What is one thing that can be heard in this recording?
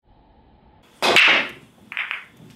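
A cue ball smashes into a rack of billiard balls with a sharp crack.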